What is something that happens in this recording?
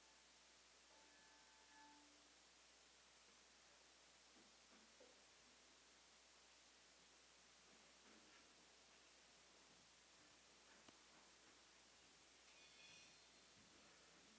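A handbell rings briefly.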